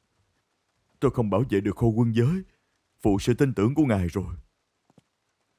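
A man speaks in a low, serious voice close by.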